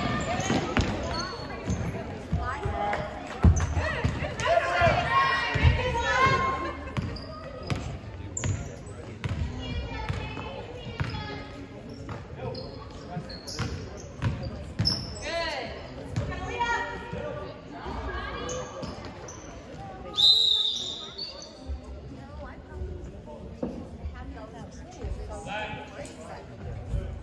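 A basketball bounces and thuds on a wooden floor.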